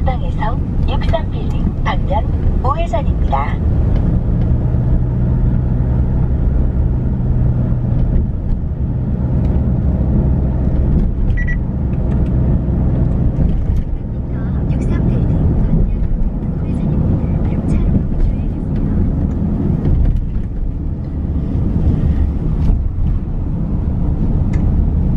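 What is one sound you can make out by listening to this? A car's engine hums steadily with road rumble from inside the moving car.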